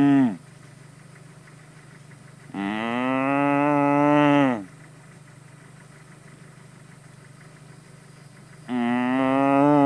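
A cow moos loudly and at length, close by.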